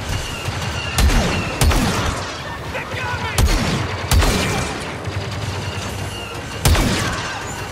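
Sharp rifle shots crack loudly several times.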